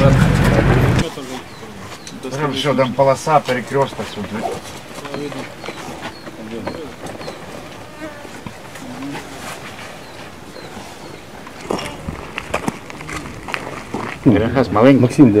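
Several men talk among themselves outdoors.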